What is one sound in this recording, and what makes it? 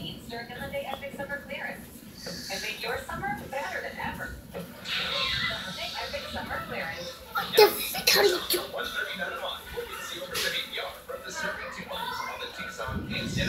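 A young child talks nearby.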